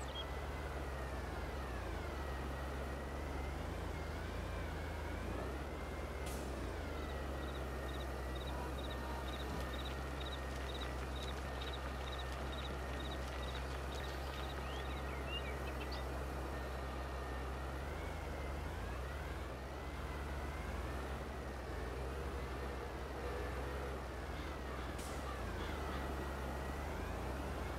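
A tractor engine rumbles steadily and its pitch rises and falls as it drives.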